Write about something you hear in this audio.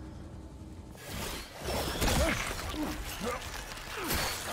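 A creature lunges and struggles violently with loud thrashing.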